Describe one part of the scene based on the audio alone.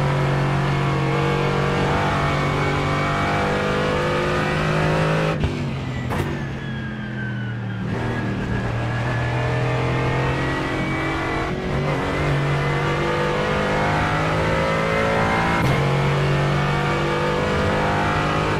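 A racing car engine roars at high revs, dropping in pitch under braking and climbing again through the gears.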